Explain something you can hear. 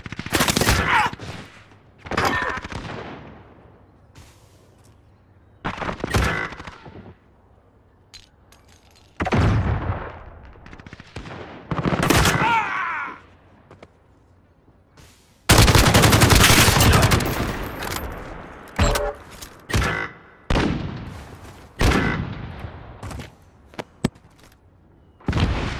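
Gunfire bursts loudly in short rounds, each echoing away.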